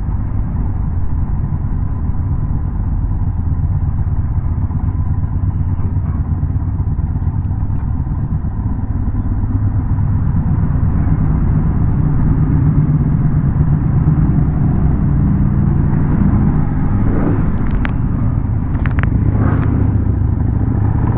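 A motorcycle engine rumbles steadily up close, rising as it speeds up.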